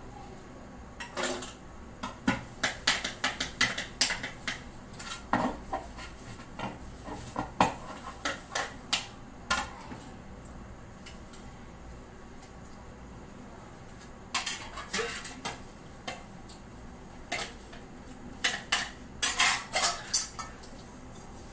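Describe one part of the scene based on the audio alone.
Metal pots and plates clatter and clink as a woman handles them.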